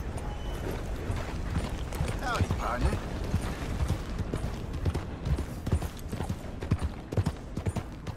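A horse's hooves clop steadily on a dirt road.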